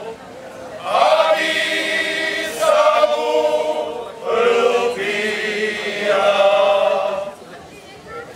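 A male choir sings together outdoors.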